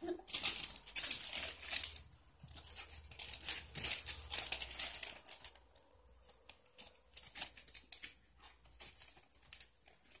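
Paper crinkles and rustles as puppies scramble about close by.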